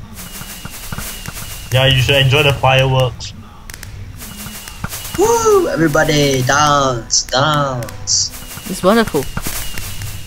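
Fireworks pop and crackle in bursts.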